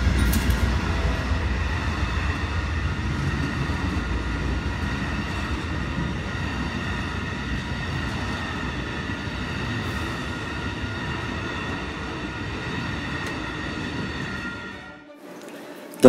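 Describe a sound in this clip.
A passenger train rumbles past on the tracks.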